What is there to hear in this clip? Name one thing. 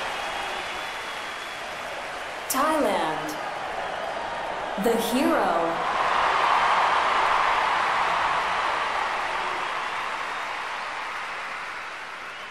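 A large crowd murmurs and cheers in a big echoing arena.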